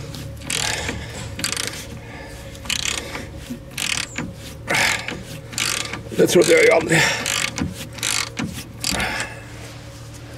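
A ratchet wrench clicks in short bursts as it turns a bolt.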